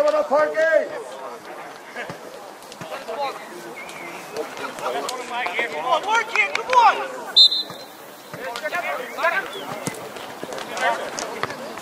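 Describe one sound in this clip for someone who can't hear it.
Young men shout and call out to each other across an open outdoor field.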